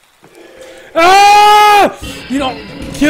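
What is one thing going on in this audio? A man screams in a drawn-out, high voice into a close microphone.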